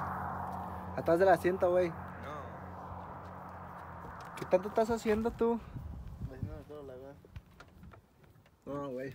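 A young man talks with animation nearby, outdoors.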